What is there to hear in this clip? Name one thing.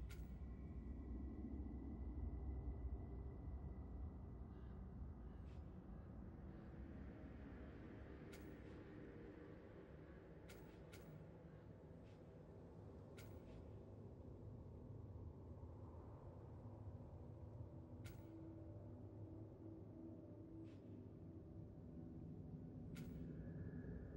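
Short game menu clicks sound now and then.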